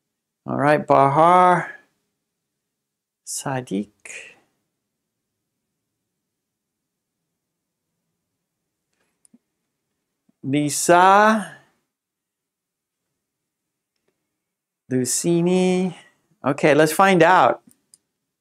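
A man speaks slowly and clearly into a microphone, in short separate phrases.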